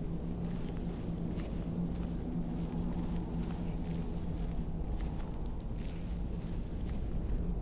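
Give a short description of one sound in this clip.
A magic spell hums and crackles steadily.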